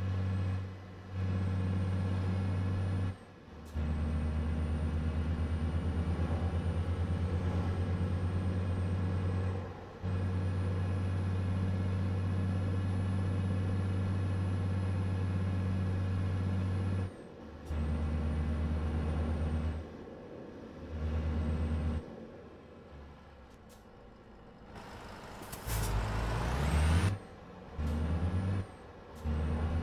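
A truck engine hums steadily, dropping away at times as the driver shifts gears.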